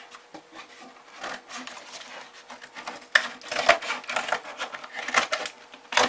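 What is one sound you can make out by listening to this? Pliers crimp and snip at a paper edge with sharp clicks.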